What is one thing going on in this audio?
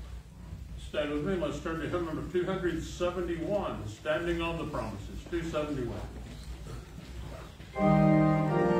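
A man speaks steadily through a microphone in a large echoing hall.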